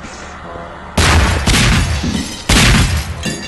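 A fiery explosion booms and roars.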